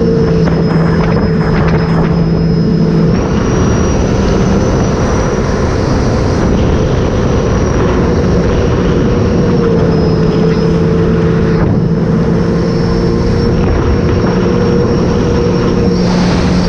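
Water splashes and rushes against a jet ski's hull.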